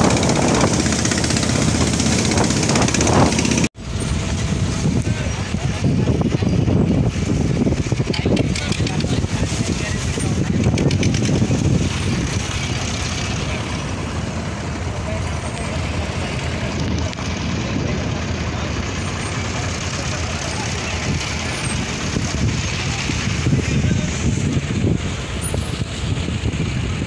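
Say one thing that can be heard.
Wind blows hard into the microphone outdoors.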